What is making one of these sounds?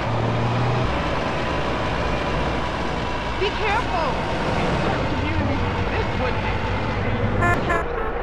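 A truck engine rumbles steadily as a tanker truck drives along a road.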